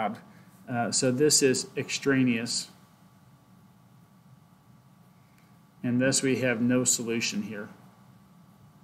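A young man speaks calmly into a computer microphone, in short bursts.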